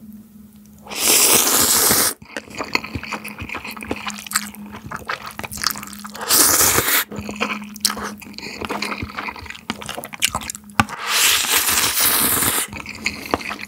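A young man loudly slurps noodles close up.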